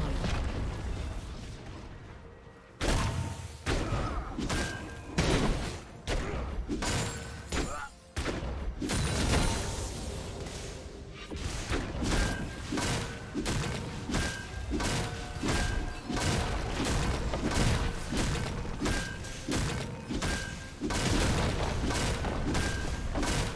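Game characters fight with bursts of spell effects and strikes.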